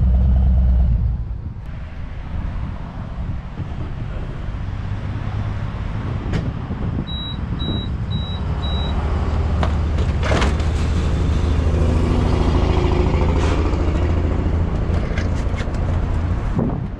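A motorcycle engine idles steadily.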